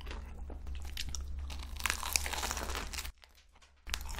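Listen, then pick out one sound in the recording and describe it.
Flaky pastry crackles as a young woman bites into it.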